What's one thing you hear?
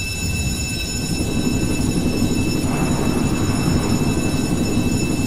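A helicopter's engine and rotor whir loudly.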